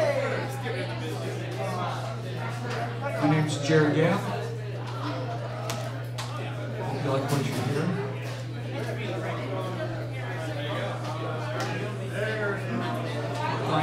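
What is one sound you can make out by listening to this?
A man plays an acoustic guitar.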